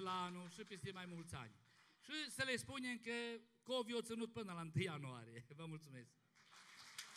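A man speaks loudly through a microphone in a large hall.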